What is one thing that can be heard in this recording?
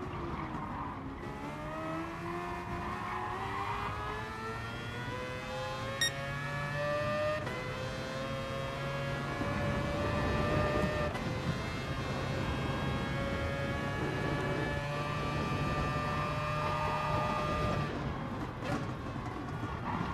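A racing car engine revs up through the gears, whining higher with each shift.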